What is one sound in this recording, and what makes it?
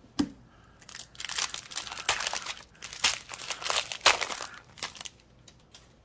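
A foil wrapper crinkles and tears open close by.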